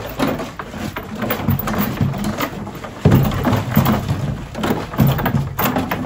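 A horse slurps water from a bucket.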